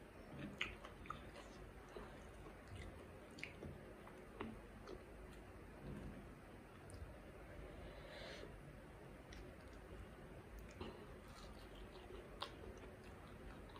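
A woman chews crunchy fried food close to a microphone.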